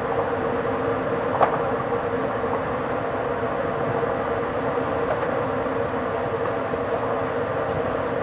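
Train wheels clatter over rail joints and points.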